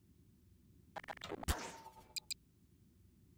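A tool gun fires with a sharp electric zap.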